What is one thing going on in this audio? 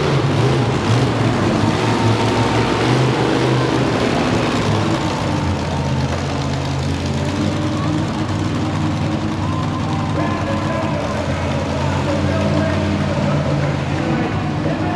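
A monster truck engine roars loudly and revs.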